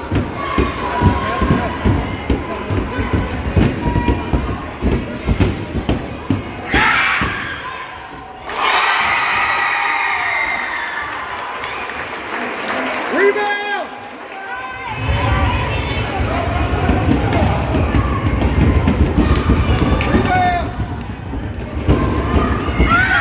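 Spectators chatter and call out in a large echoing gym.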